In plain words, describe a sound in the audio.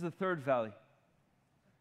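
A man speaks loudly through a microphone in a large hall, then pauses.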